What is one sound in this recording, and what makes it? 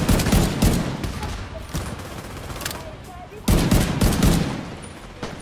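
Rifle gunshots fire in rapid, loud bursts.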